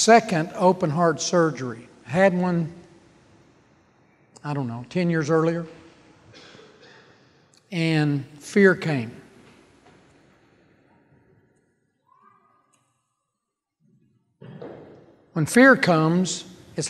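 An older man speaks calmly through a microphone in an echoing hall, pausing between phrases.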